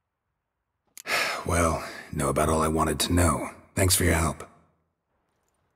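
A man speaks calmly in a deep, gravelly voice.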